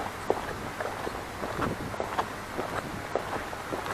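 Footsteps scuff on a paved path nearby.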